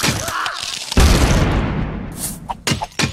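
A heavy, booming thud lands.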